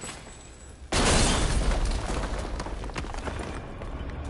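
A shotgun fires with a loud booming blast that echoes.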